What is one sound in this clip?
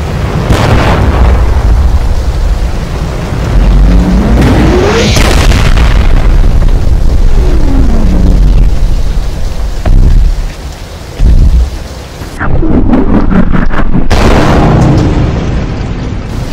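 Loud rumbling booms roll through the air.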